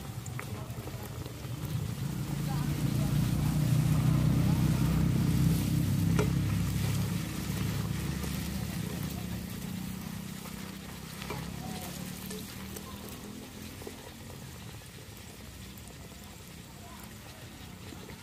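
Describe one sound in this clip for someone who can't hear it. Hot oil sizzles and bubbles steadily as dough fries.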